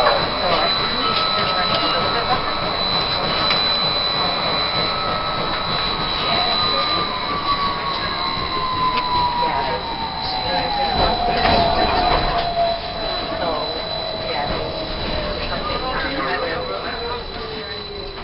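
A tram's motor whines, falling slowly in pitch as the tram slows.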